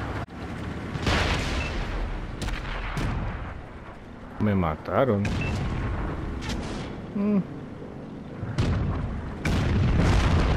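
Tank shells go off with loud booms.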